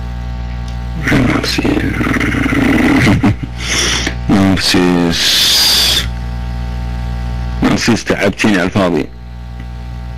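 A man speaks with animation through a microphone.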